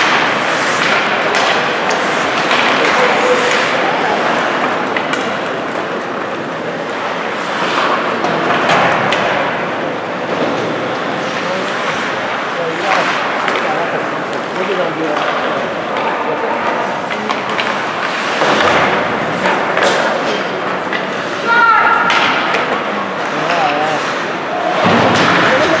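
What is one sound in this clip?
Skates scrape and hiss on ice in a large echoing arena.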